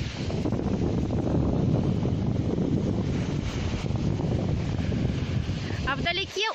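Small waves lap gently against the shore.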